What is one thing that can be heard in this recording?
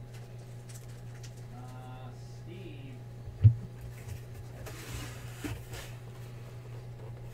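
Trading cards shuffle and slide against each other.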